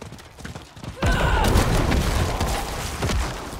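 Heavy blows thud and clash as a crowd of monsters is struck.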